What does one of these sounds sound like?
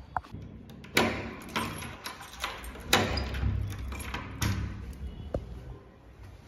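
A key rattles and clicks in a door lock.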